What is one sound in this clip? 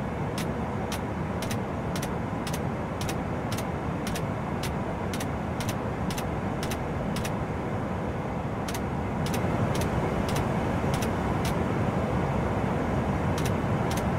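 A jet engine roars steadily with a deep rumbling hum.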